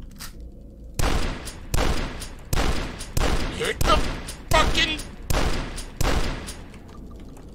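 Shotgun blasts boom repeatedly in quick succession.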